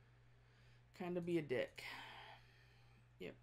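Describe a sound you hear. A woman speaks briefly and with animation close to a microphone.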